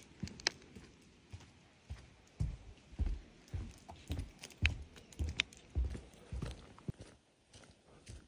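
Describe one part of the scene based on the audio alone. Footsteps thud on a wooden boardwalk.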